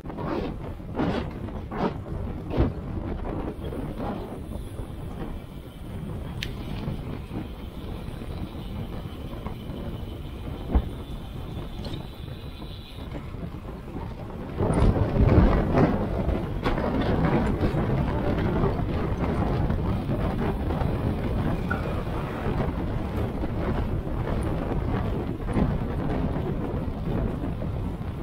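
Bicycle tyres roll over a rough road surface.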